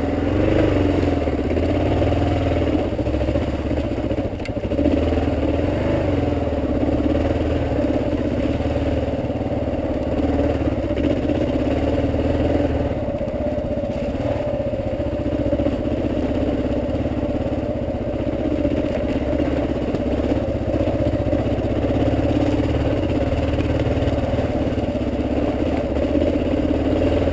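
A motorcycle engine rumbles steadily close by as it rides along a bumpy dirt track.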